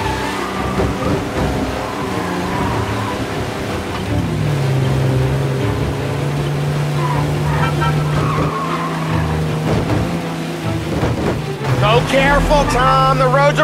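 Rain patters steadily on the road.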